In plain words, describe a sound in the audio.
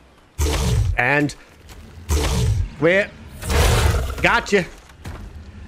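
A large creature roars and growls nearby.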